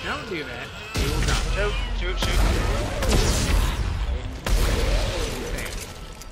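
A weapon fires loud crackling energy blasts.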